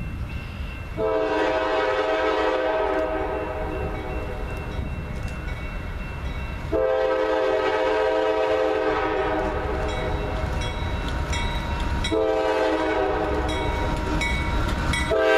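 A train horn blares in long blasts.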